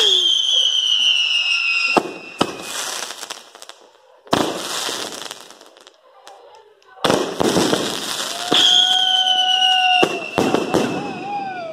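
Fireworks whistle shrilly, sliding slowly down in pitch.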